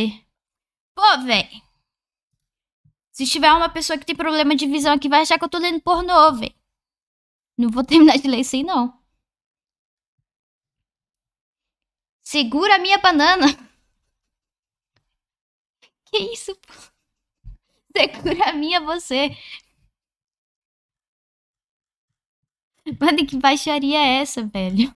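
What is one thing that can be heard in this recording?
A young woman reads out and talks with animation into a microphone, in bursts with pauses.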